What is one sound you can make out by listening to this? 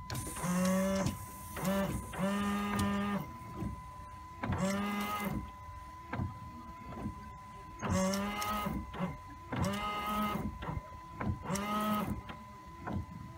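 Windshield wipers squeak and thump across wet glass.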